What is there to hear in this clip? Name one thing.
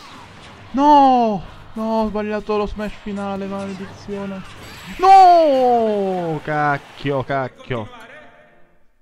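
Game fighters cry out in loud voices during a fight.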